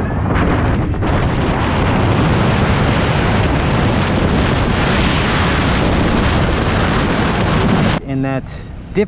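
Wind roars loudly past the rider at speed.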